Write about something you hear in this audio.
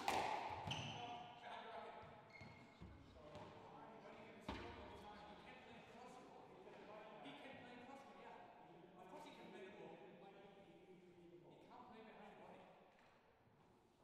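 A man talks calmly nearby in an echoing room.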